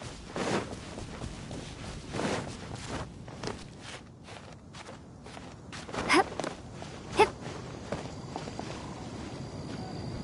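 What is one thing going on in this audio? Light footsteps patter across grass.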